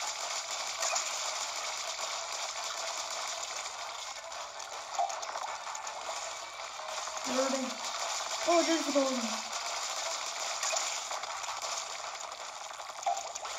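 Video game sound effects of splattering and shooting play steadily through a small speaker.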